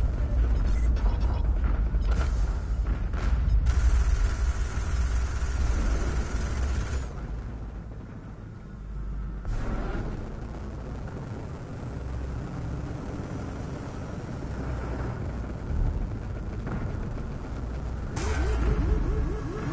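A spacecraft engine rumbles low.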